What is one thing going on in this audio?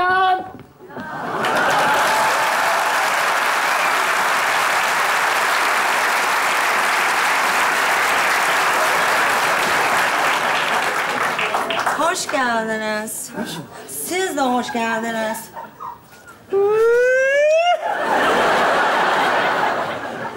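A studio audience laughs and applauds loudly.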